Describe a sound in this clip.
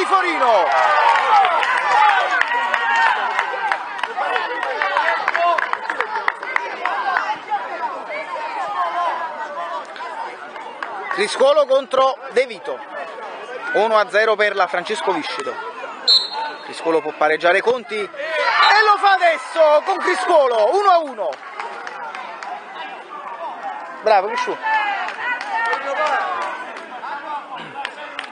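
Children shout and cheer outdoors nearby.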